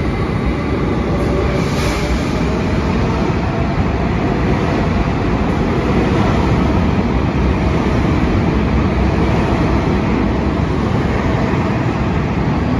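A subway train rumbles loudly past along the tracks in an echoing underground station.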